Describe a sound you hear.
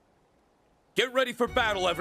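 A young man speaks with calm resolve.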